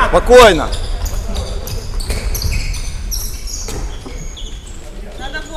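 Sneakers squeak on a wooden floor.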